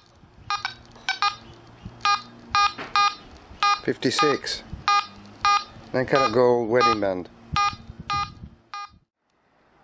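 A metal detector gives short, high, repeated beeps.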